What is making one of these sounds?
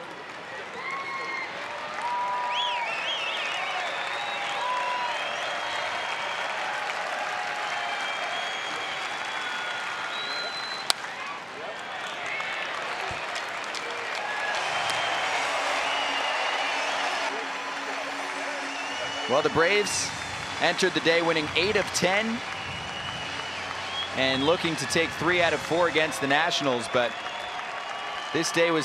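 A large crowd murmurs and calls out in an open stadium.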